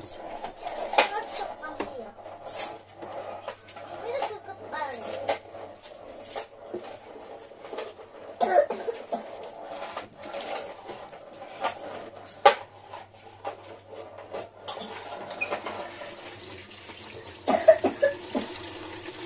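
Dishes clink and knock against a basin.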